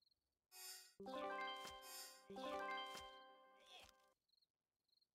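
Cartoonish chimes ring out as plants pop into place.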